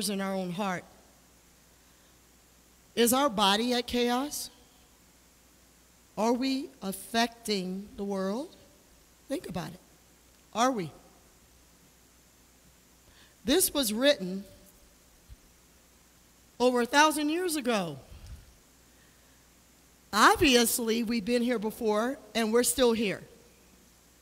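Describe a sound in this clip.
A woman speaks with animation into a microphone in a large echoing hall.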